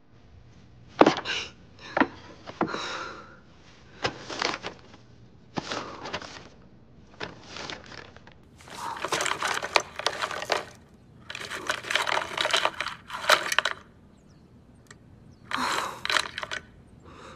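A young woman speaks quietly to herself, close by.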